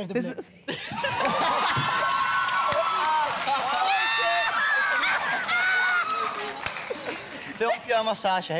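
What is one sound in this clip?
An audience cheers and screams loudly.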